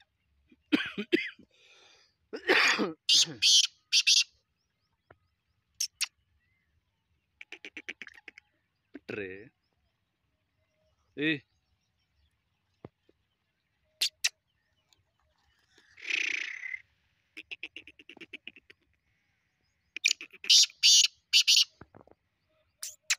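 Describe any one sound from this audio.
A caged bird calls loudly in short, repeated bursts.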